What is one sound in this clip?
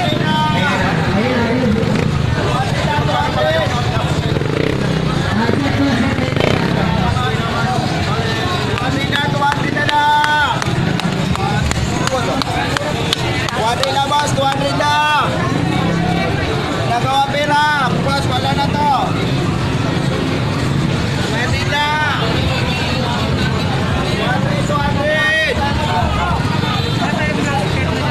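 A crowd of people chatters and bustles outdoors.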